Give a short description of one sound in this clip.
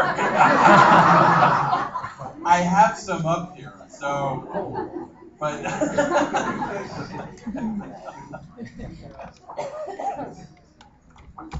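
A man speaks with animation into a handheld microphone in a room with some echo.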